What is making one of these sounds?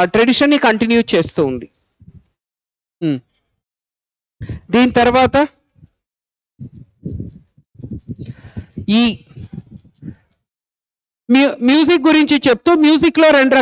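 A man lectures with animation, close to a microphone.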